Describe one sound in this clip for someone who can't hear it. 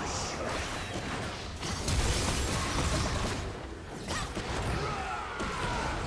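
Small explosions and hits thud repeatedly.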